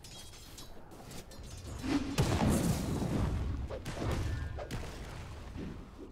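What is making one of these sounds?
Magic blasts and weapon hits crash in a fast fight, loudest in the middle.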